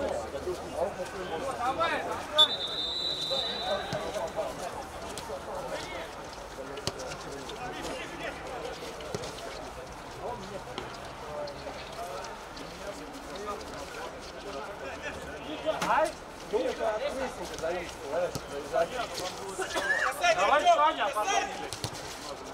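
Men shout to each other outdoors.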